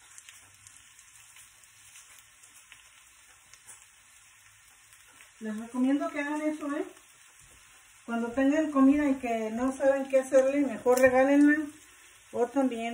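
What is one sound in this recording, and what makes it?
Food sizzles quietly in a frying pan.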